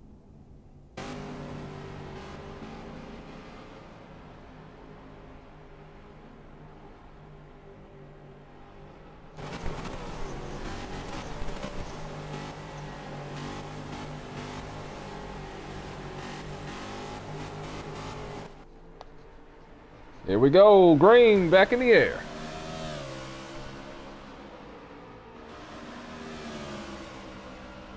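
Race car engines roar and drone steadily.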